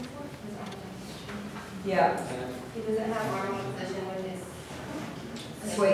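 A young woman talks to a room, heard from a few metres away.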